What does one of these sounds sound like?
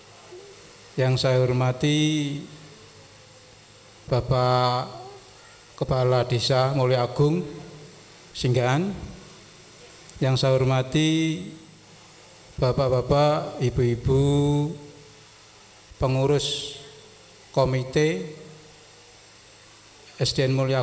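A middle-aged man speaks calmly into a microphone in short phrases with pauses, heard through a loudspeaker.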